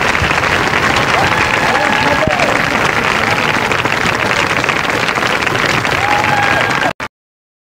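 A large crowd claps and cheers steadily.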